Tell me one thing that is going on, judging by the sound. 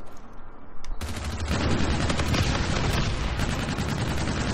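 An automatic rifle fires rapid bursts up close.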